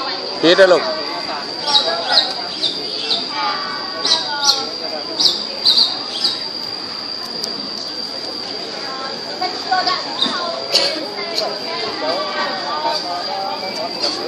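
A crowd of young people chatter and talk together outdoors.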